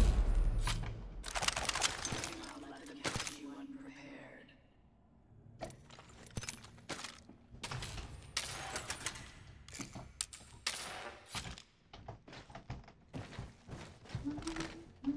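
Short game menu clicks and beeps sound.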